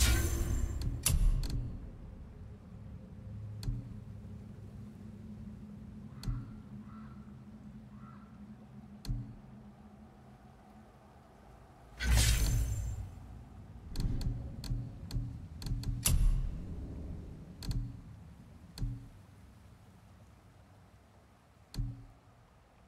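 Menu clicks tick softly as options are scrolled through.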